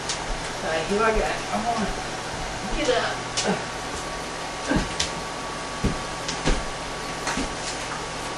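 Hands and knees thump softly on a hard floor.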